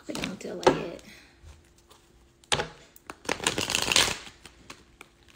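Paper banknotes rustle as they are flipped through.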